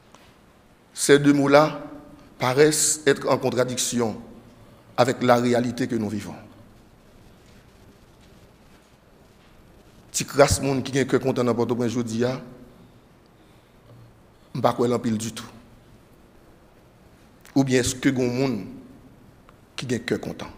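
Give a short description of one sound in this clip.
A man speaks slowly and calmly into a microphone, with pauses between phrases, in an echoing room.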